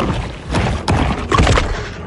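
A shark bites its prey with a heavy crunch.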